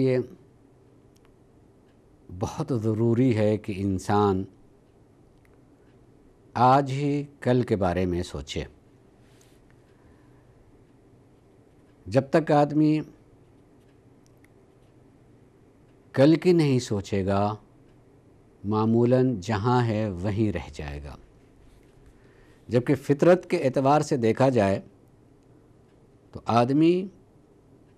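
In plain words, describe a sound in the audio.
An older man speaks calmly and slowly into a close microphone, with long pauses.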